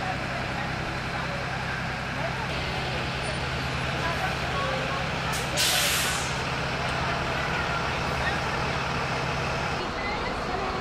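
A bus engine idles with a low, steady rumble.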